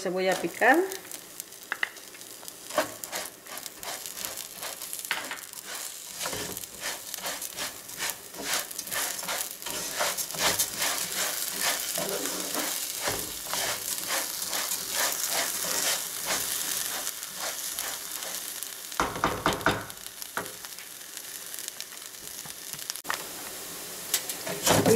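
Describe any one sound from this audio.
Rice sizzles and crackles in a hot pan.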